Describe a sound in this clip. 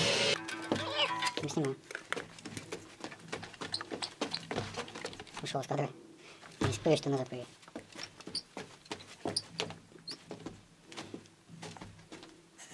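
Sneakers scuff and tap on a hard floor.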